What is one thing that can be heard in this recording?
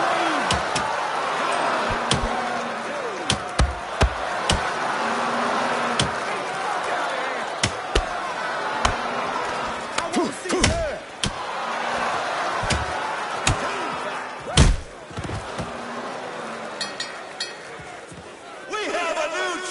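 A crowd cheers and roars in a large hall.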